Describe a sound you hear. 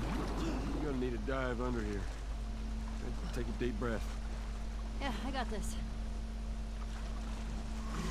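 Water splashes as people swim.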